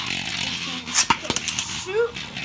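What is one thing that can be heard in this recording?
Spinning tops clash with sharp clicks.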